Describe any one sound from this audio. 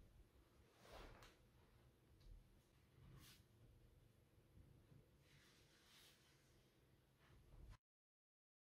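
A plastic rod clicks as it is pressed into place.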